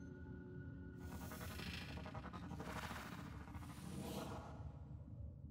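A bowstring is drawn back with a rushing swish.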